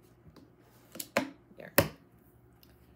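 A stamping tool clacks shut on a desk.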